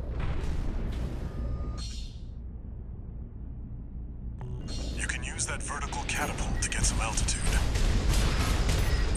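Rocket thrusters roar as a robot flies.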